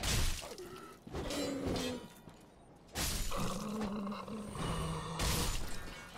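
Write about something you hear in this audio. Game swords clash and slash.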